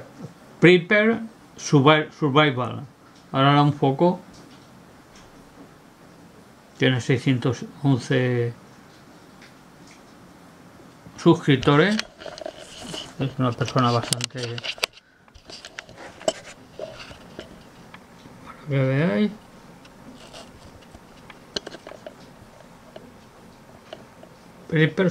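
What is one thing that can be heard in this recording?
A man speaks calmly close by, in short bursts with pauses.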